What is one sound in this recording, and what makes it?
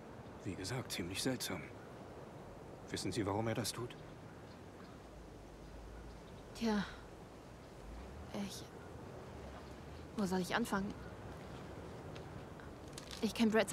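A young woman speaks quietly and hesitantly up close.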